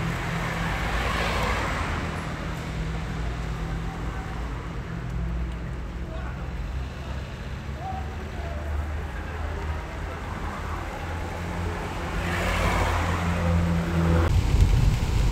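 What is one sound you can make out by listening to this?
Rain patters into a puddle.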